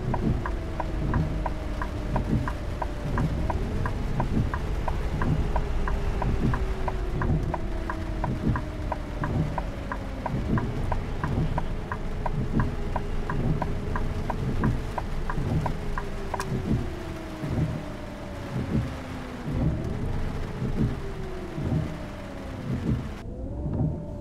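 Rain patters on a bus windscreen.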